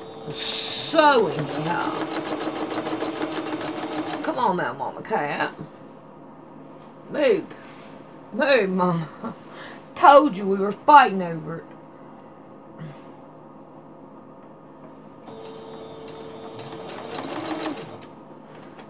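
A sewing machine whirs and stitches rapidly.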